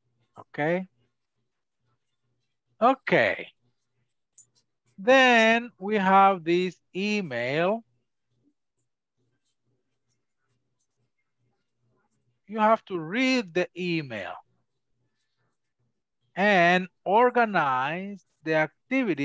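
A woman speaks clearly through an online call, in short phrases with pauses.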